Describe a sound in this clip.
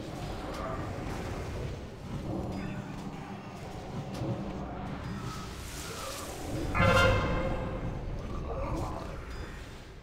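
Magic spells blast and boom in a noisy fantasy battle.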